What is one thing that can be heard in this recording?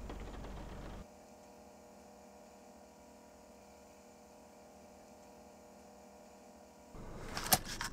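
A handheld microcassette recorder plays back with a tape hiss.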